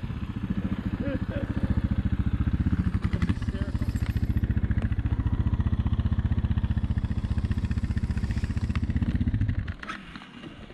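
A motorcycle rides slowly past on dirt.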